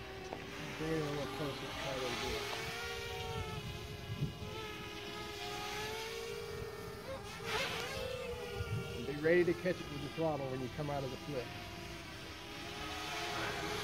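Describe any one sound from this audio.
A drone's motors whine overhead, shifting slightly in pitch.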